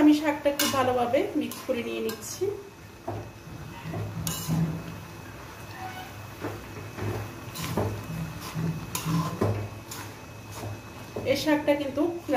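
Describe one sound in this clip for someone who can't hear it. Vegetables sizzle in a hot pan.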